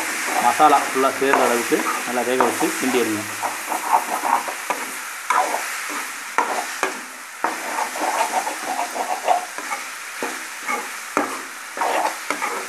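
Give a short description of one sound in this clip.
Food sizzles in hot oil.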